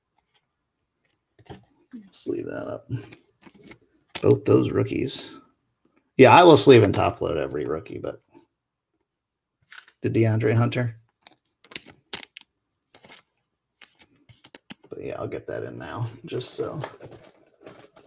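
Trading cards slide and rustle against each other in hands.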